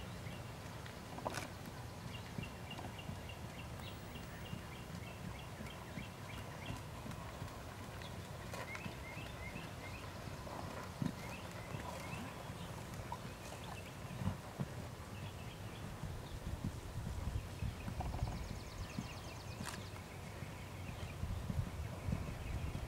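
A horse's hooves thud softly on sand in a steady rhythm.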